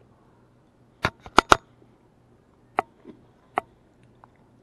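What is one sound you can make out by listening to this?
A metal fork clicks against a plate.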